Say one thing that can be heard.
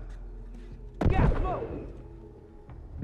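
A smoke grenade bursts with a loud hissing rush.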